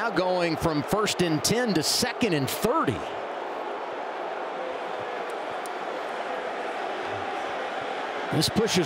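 A large crowd murmurs and cheers steadily in an open stadium.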